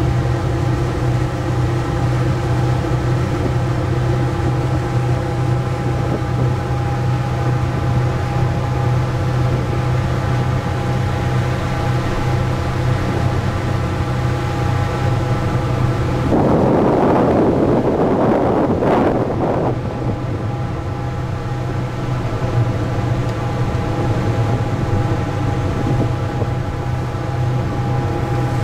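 A boat motor hums steadily and close by.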